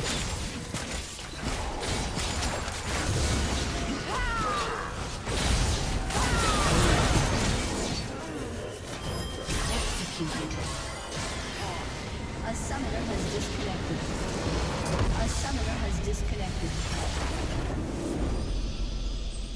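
Game spells and attacks crackle and blast in a busy battle.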